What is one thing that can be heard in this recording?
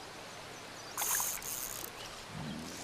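A fishing reel whirs as line is reeled in.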